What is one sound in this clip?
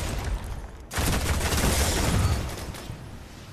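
An explosion booms with a loud roar.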